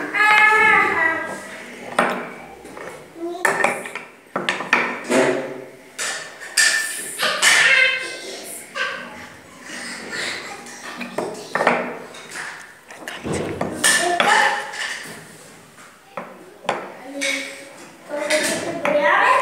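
Wooden cylinders knock into a wooden block.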